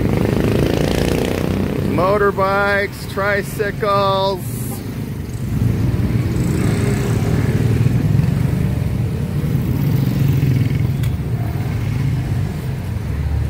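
Motorcycle engines rumble and putter as they pass close by.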